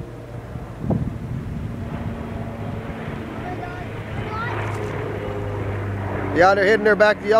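A propeller plane's engine drones, growing louder as it approaches.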